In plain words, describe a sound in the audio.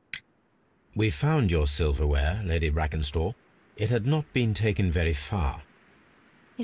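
A man speaks calmly and softly, close by.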